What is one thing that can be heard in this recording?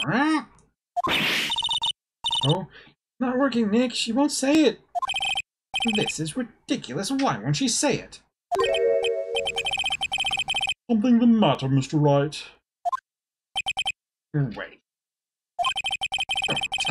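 Quick electronic blips chatter in rapid runs.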